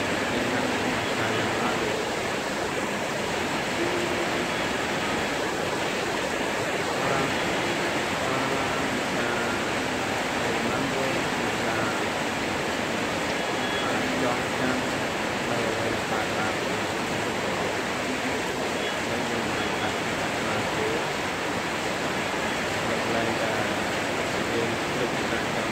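Heavy rain drums on corrugated metal roofs.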